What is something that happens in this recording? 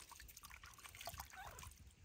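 Water splashes gently as hands scoop it.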